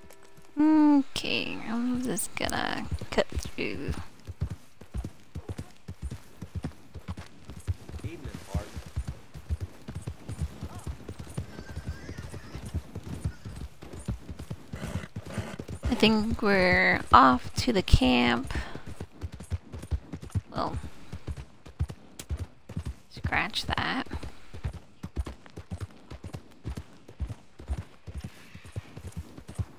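A horse gallops steadily, hooves thudding on soft ground.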